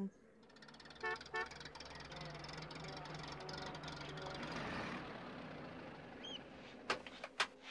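A van engine runs and the van pulls up.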